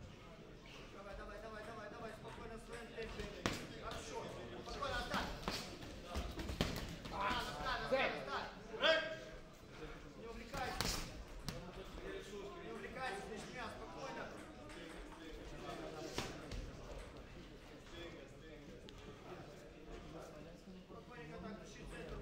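Boxing gloves thud in quick punches.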